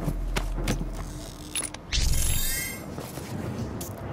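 A heavy blow crunches and tears with a wet thud.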